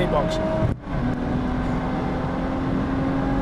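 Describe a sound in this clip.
A man speaks close up.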